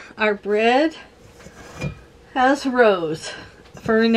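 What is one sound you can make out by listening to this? A cloth rustles as it is pulled off a bowl.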